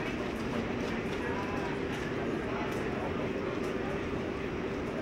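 A crowd of men and women chatters and calls out steadily in a large echoing hall.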